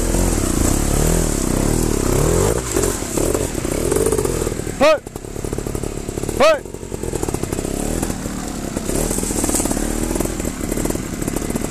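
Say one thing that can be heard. A motorbike engine revs up and down close by.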